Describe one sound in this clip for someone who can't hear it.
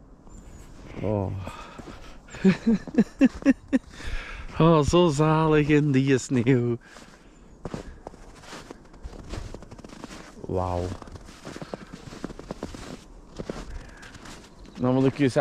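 A young man talks and laughs with animation close by.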